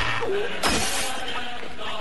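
Footsteps crunch on broken glass and debris.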